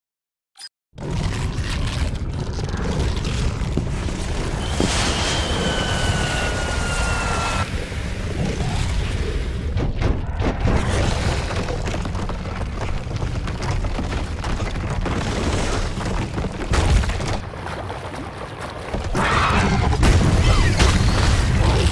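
A huge creature stomps along with heavy, thudding footsteps.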